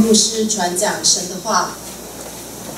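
A young woman speaks calmly into a microphone over loudspeakers.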